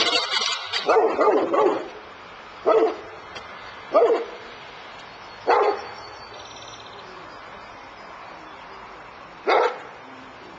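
A man shouts loudly in short bursts nearby.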